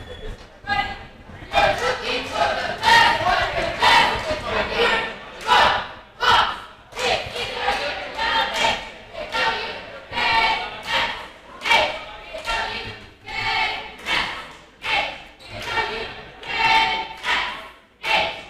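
A group of teenage girls chants a cheer loudly in rhythm, echoing in a large hall.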